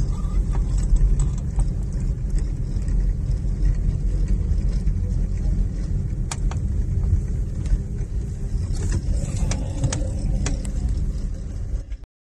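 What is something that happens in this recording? A car engine hums low and steady from inside a moving car.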